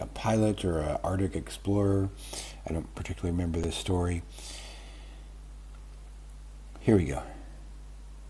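An older man talks with animation, close to a microphone.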